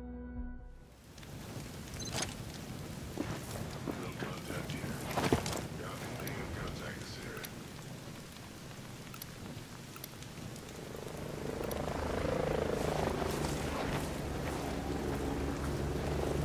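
Flames crackle and pop nearby.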